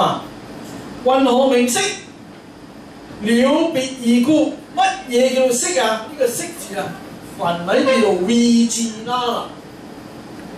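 A man reads aloud calmly through a microphone.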